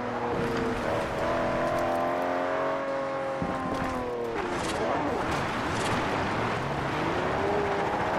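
Tyres skid on gravel.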